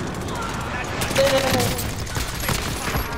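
A rifle fires a burst of rapid shots.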